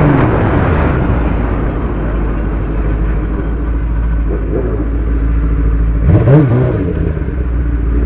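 A motorcycle engine idles low and steady.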